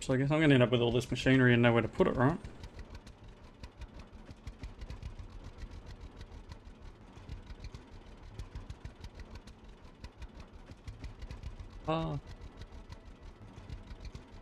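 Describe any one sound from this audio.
A small tractor engine chugs steadily with a rapid putter.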